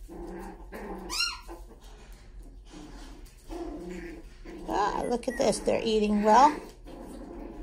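Puppies whine and yelp close by.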